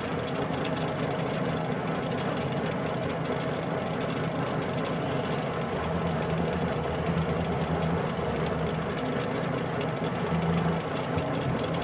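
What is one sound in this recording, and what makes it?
A metal lathe hums steadily as it spins.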